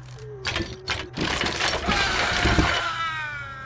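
A heavy metal chain clinks and rattles.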